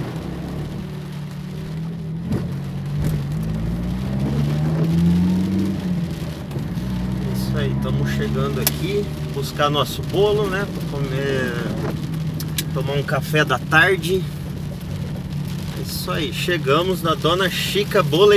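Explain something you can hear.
Raindrops patter on a car windshield.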